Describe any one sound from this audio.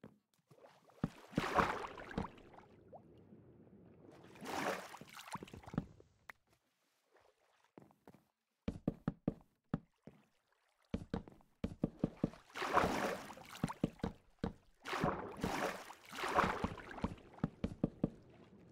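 Water splashes and swishes.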